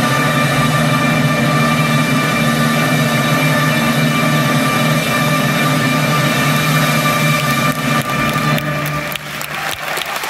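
An orchestra plays a loud, full piece in a large hall.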